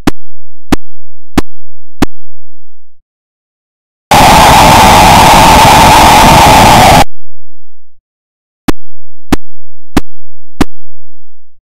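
An electronic ball bounces with short sharp beeps.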